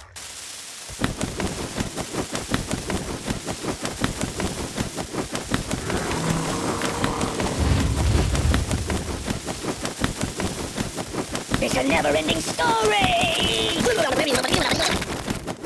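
Bird droppings patter down in a rapid stream of small splats.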